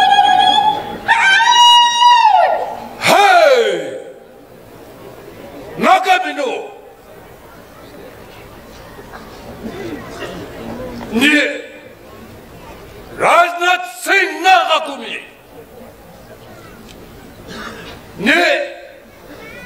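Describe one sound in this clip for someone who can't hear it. An elderly man shouts long, ringing calls outdoors.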